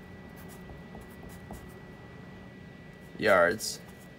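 A marker squeaks softly as it writes on paper.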